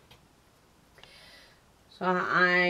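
A pencil scratches lightly across wood.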